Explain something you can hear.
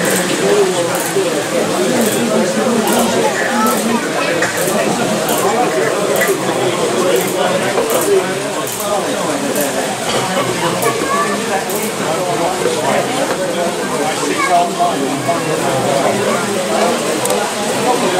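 A model train rolls along the track, its wheels clicking steadily over rail joints.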